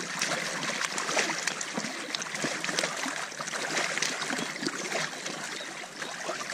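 Water laps and splashes against inflatable pontoon hulls.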